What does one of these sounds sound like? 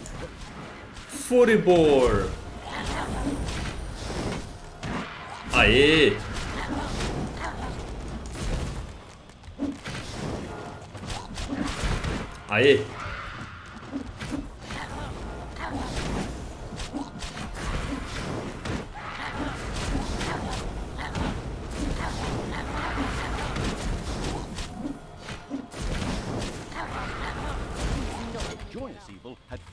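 Swords clash and strike repeatedly in a fast battle.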